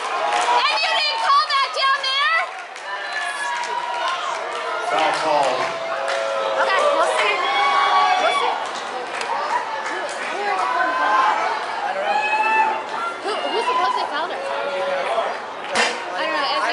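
Young women shout and call to each other outdoors, close by and far off.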